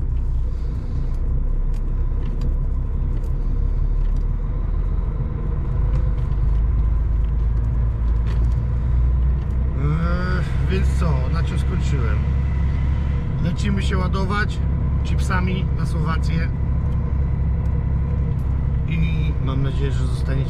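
A truck engine rumbles steadily from inside the cab while driving.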